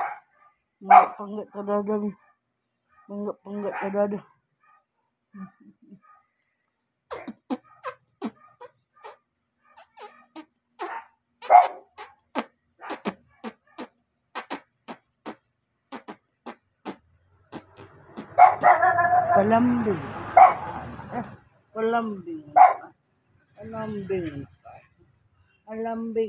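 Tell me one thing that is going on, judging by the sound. A man speaks softly and affectionately, close by.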